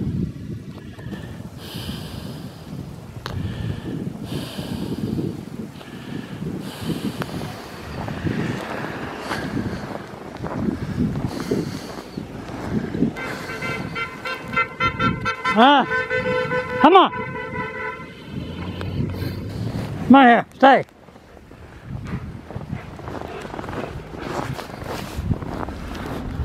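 Wind blows across an open snowy place.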